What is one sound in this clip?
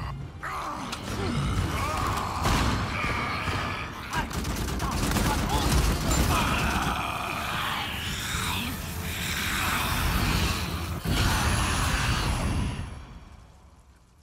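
Loud bursts rumble and crackle.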